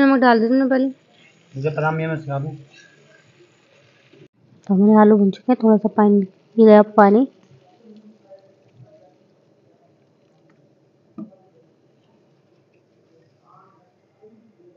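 A spatula scrapes and stirs food in a metal pan.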